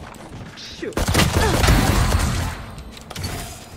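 Rapid gunshots ring out in a burst.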